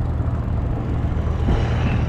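A motorbike passes nearby.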